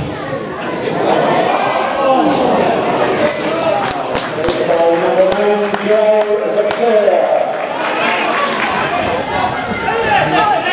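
A crowd of spectators sings and shouts loudly in an open stadium.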